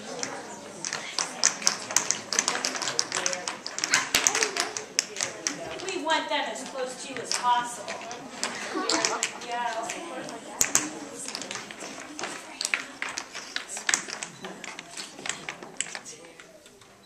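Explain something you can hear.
Small shoes tap and shuffle on a hard floor.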